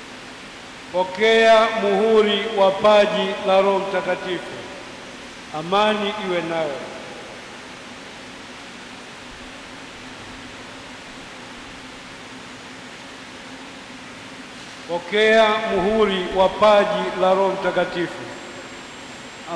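An elderly man chants slowly into a microphone, heard through loudspeakers.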